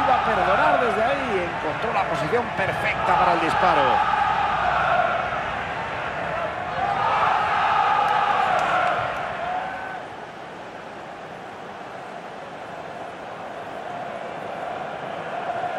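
A large crowd roars and cheers in a big stadium, swelling and then fading.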